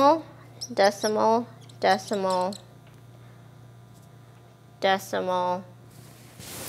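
A young woman speaks calmly and clearly close by.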